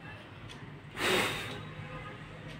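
A boy blows a short puff of breath.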